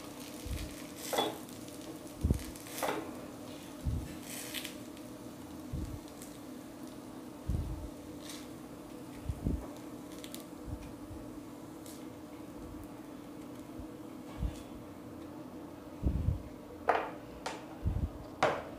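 Small balls of fried dough thud softly onto a metal plate.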